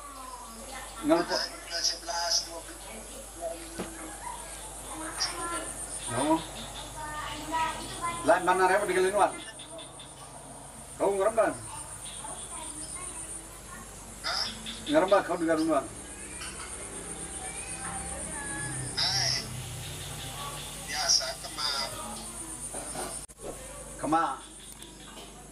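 An elderly man speaks into a phone in bursts, calmly and close by.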